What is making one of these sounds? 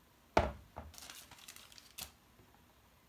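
Wooden puzzle pieces click and tap against a board.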